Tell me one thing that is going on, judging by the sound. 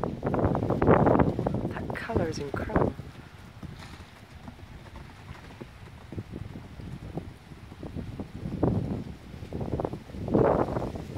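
A horse's hooves thud on soft sand as it canters.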